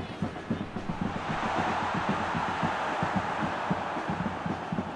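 A stadium crowd roars and swells loudly.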